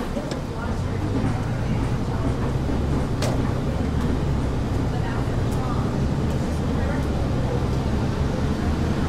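A bus engine hums low and steady as the bus pulls away.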